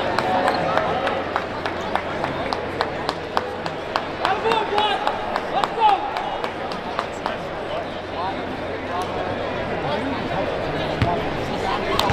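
Spectators murmur and chatter in a large echoing arena.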